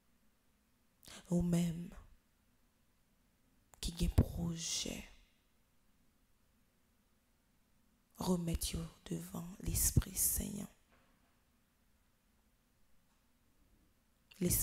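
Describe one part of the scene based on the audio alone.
A girl speaks into a microphone in short phrases, with pauses between them.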